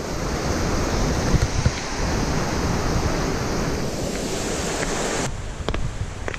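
Footsteps climb stone steps.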